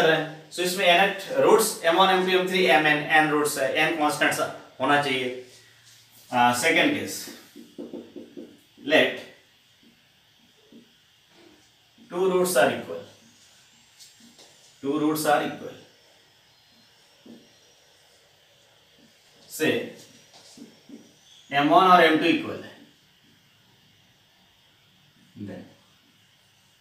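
A man speaks calmly and clearly, in bursts with pauses.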